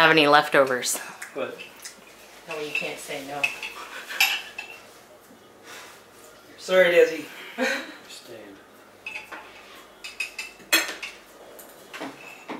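Forks clink against plates.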